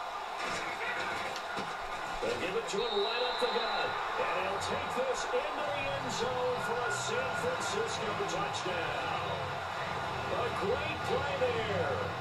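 A stadium crowd cheers loudly through a television speaker.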